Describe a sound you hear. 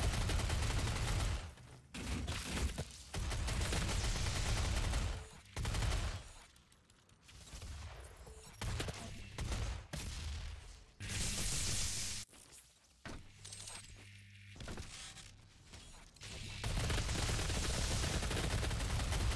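Heavy guns fire in loud rapid bursts.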